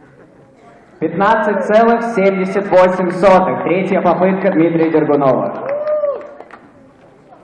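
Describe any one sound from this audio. A man announces through a microphone and loudspeakers in a large echoing hall.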